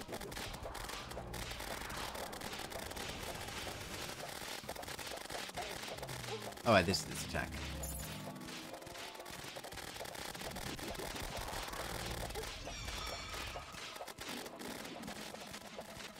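Rapid magical zapping and whooshing shots fire continuously.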